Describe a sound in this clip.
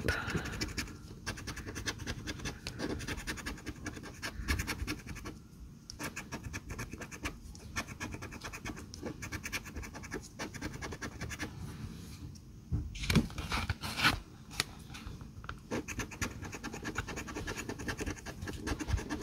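A coin scratches rapidly across a paper ticket.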